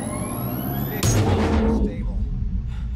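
A deep electric boom bursts out and rumbles away.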